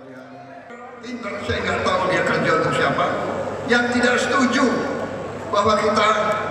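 A man speaks forcefully into a microphone in a large echoing hall.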